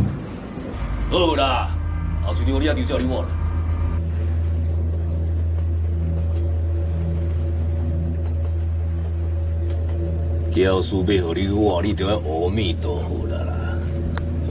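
A man speaks calmly into a phone, close by.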